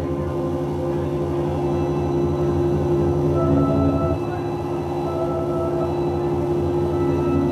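Loud music with a steady beat plays through speakers.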